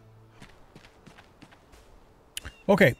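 Footsteps pad softly on grass and dirt.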